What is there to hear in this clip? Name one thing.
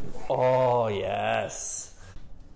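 A young man cries out loudly.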